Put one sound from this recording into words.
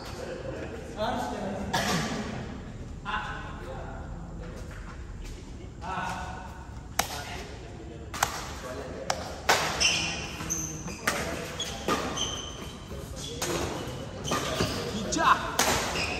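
Badminton rackets smack a shuttlecock in an echoing hall.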